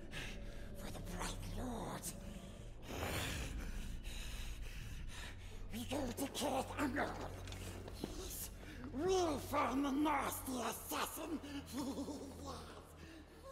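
A creature speaks in a raspy, hissing voice.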